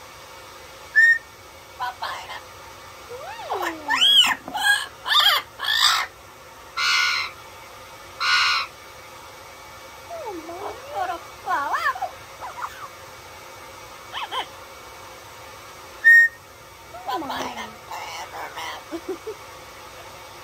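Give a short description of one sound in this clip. A parrot squawks, chatters and mimics speech close by.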